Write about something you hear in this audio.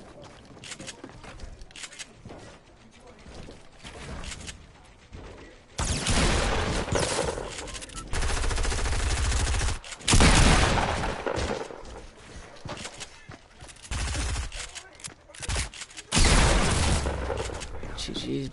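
Wooden panels clatter and thud as a game character builds walls and ramps.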